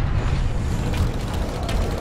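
An aircraft engine roars overhead.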